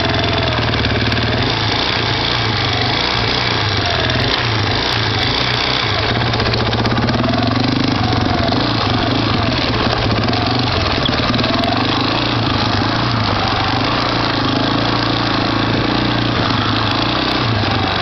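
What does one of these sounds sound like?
An all-terrain vehicle engine revs and rumbles up close.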